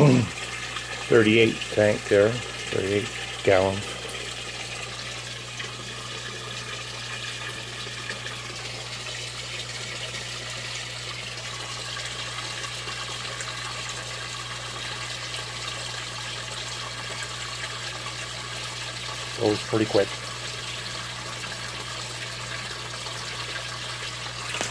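Air bubbles bubble and fizz steadily in water.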